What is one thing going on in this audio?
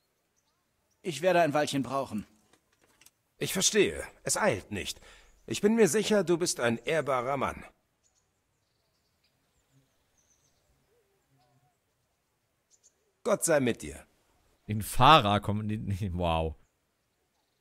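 A man speaks calmly close to a microphone, in short bursts with pauses.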